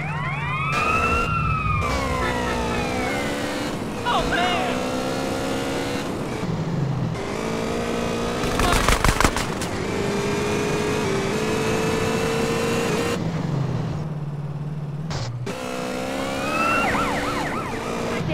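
A motorbike engine hums steadily, rising and falling as it speeds along.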